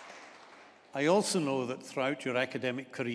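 An elderly man reads out through a microphone in a large echoing hall.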